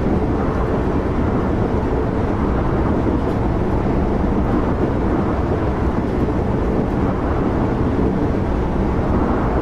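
A train rumbles steadily along the tracks at high speed.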